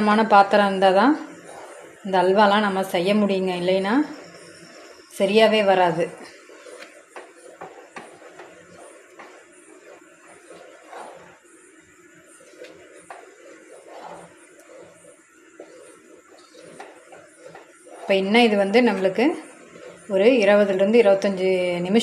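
A wooden spoon stirs and scrapes through thick liquid in a metal pan.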